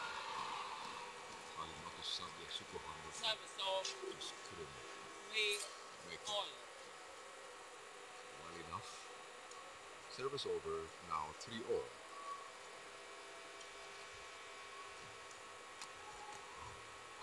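Rackets strike a shuttlecock back and forth.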